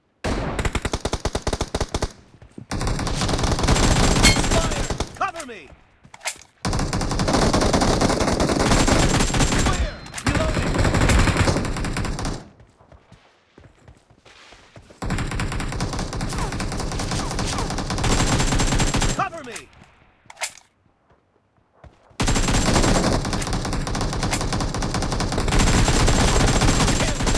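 Rifles fire rapid bursts of shots.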